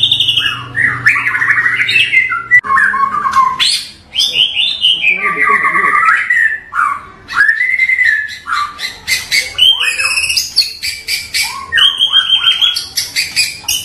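A songbird sings a loud, rich, varied song of whistles, trills and chirps, close by.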